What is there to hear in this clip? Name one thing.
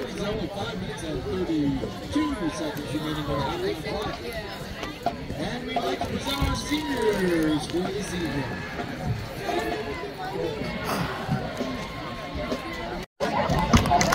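A marching band plays outdoors.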